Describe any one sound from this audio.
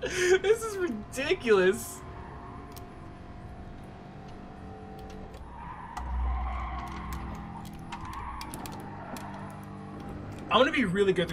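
A racing car engine drones and shifts in pitch.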